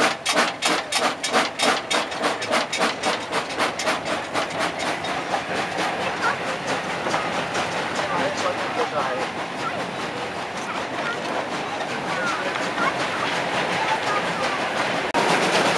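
A train rumbles steadily along the track.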